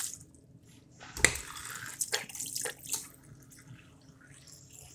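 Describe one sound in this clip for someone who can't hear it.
Water runs from a tap into a sink.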